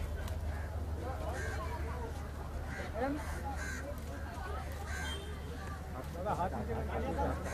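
Several adults chatter and call out nearby outdoors.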